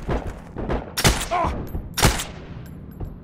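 A semi-automatic rifle fires single shots.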